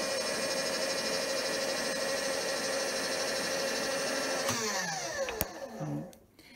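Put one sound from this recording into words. A machine motor hums steadily, then winds down and stops.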